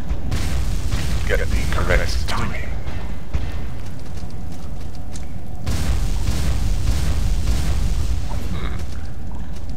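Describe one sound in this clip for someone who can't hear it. Swords slash and strike in a game fight.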